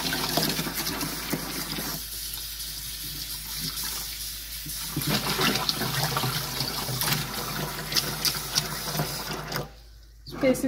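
Water runs from a tap and splashes into a bucket.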